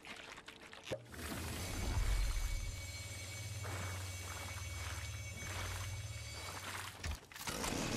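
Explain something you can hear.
An electric beam hums and crackles loudly.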